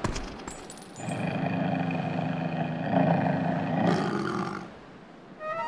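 A wolf growls low and fiercely.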